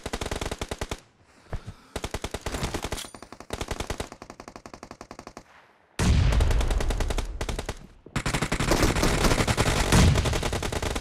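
Rapid automatic gunfire rattles in quick bursts.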